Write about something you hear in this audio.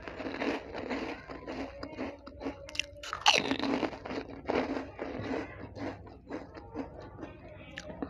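Crisp snacks rustle and crackle in a woman's fingers.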